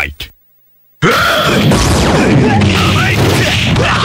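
Punches and energy blasts crash and thud rapidly in a video game fight.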